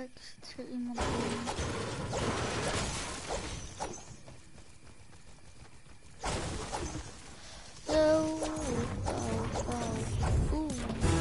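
A pickaxe strikes wood and rock with hard thuds.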